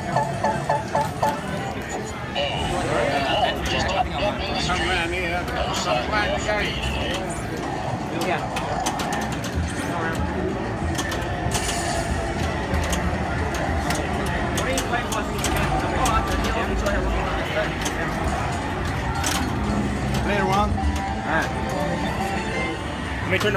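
Pinball flippers click and a ball knocks against the playfield.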